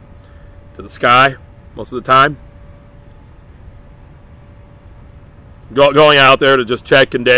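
A man speaks close up in short, emphatic bursts.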